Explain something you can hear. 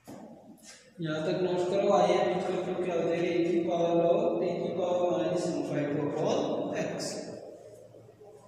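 A young man speaks clearly and steadily, close by in an echoing room.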